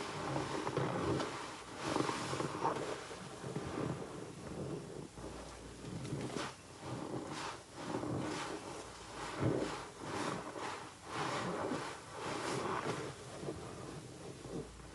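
Wet sponges squelch and squish as they are squeezed in soapy water.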